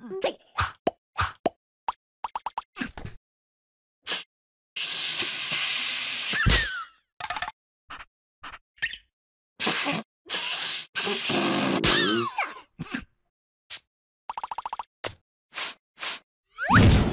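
Small cartoon creatures chatter in squeaky gibberish.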